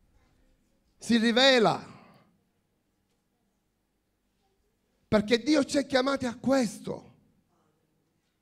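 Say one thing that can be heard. A middle-aged man speaks forcefully into a microphone over loudspeakers in a large echoing hall.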